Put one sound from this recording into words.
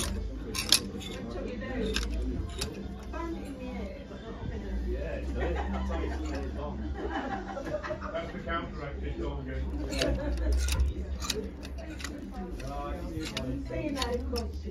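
Plastic hangers click and clack as they slide along a rail.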